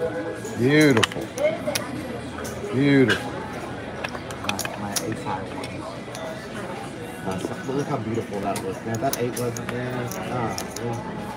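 Casino chips click and clatter as they are stacked and pushed across a table.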